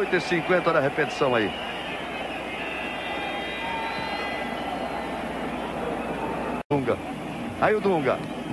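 A crowd roars steadily in a large stadium.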